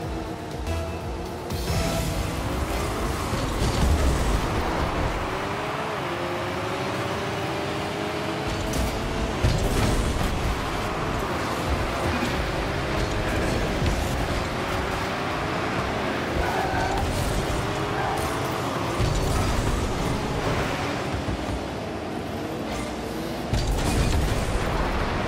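A video-game rocket-powered car engine hums and roars as it boosts.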